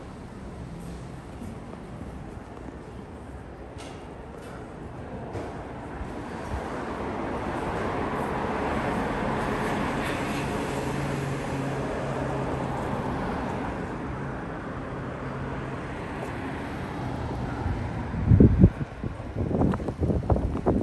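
Traffic hums steadily in the distance, outdoors.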